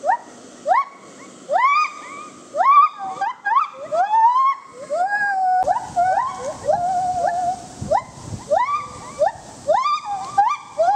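A gibbon calls nearby with loud, rising whooping hoots, over and over.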